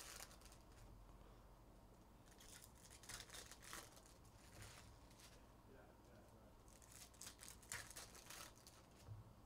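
Trading cards rustle and slide as hands shuffle through a stack.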